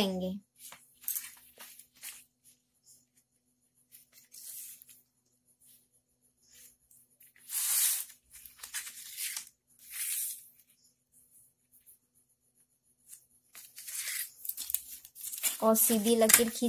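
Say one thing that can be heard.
Stiff paper rustles and crinkles as it is handled.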